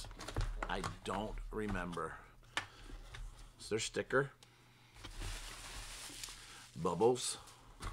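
Paper rustles and crinkles as a package is opened.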